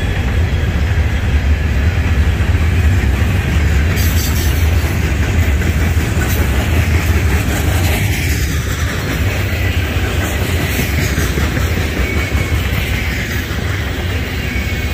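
A freight train rumbles steadily past up close.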